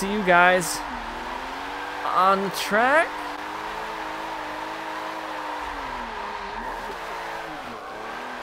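Tyres squeal steadily as a car slides through a bend.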